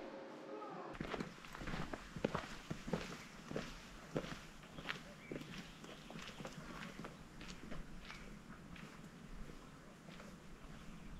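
Footsteps crunch on a dirt path.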